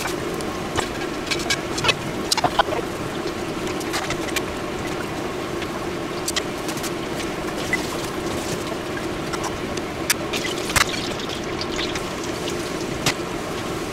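Hot oil sizzles and crackles steadily in a pot.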